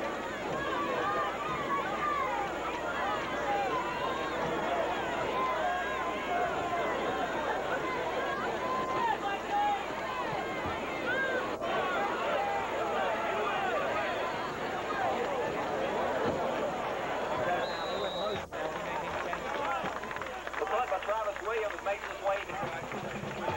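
A large crowd of spectators cheers and shouts loudly outdoors.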